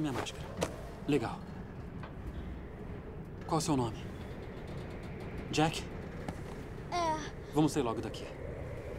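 A young boy speaks quietly and nervously.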